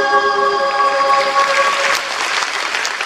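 A children's choir sings a long final chord in a large echoing hall.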